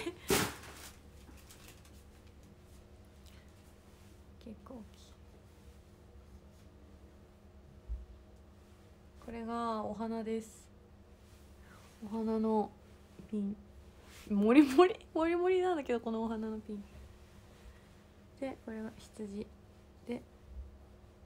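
A young woman speaks softly and closely into a microphone, in short bursts.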